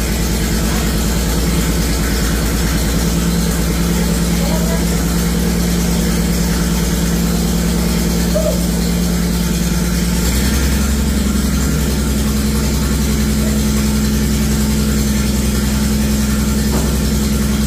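A car engine idles with a loud, lumpy rumble that steps up slightly in pitch partway through.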